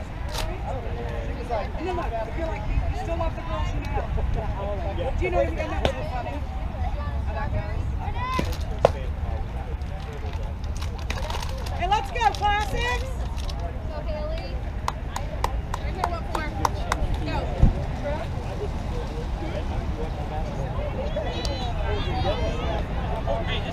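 Young women call out and chatter across an open field.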